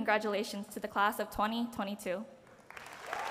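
A young woman speaks through a microphone in a large hall.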